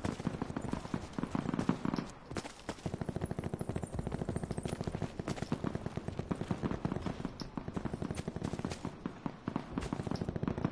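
Footsteps thud quickly and steadily over the ground.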